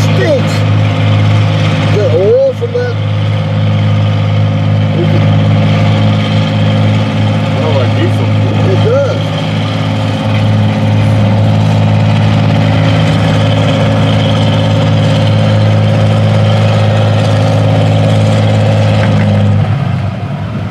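A tractor engine roars loudly and steadily close by.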